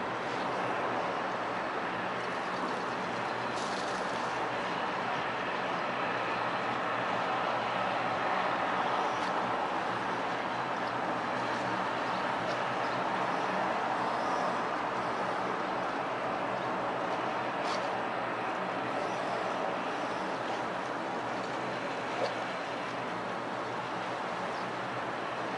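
A boat engine hums steadily in the distance.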